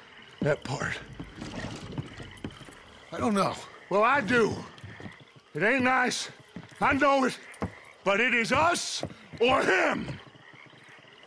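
A man speaks calmly in a low, gravelly voice.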